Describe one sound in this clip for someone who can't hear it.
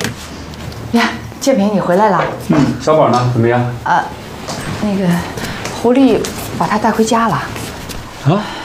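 A man speaks calmly indoors.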